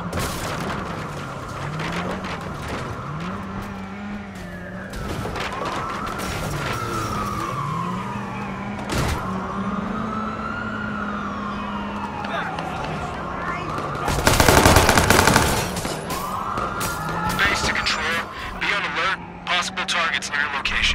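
A car engine revs up and down as the car drives.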